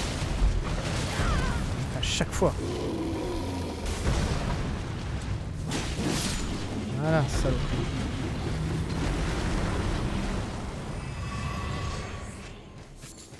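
A huge beast growls and roars with a deep rumble.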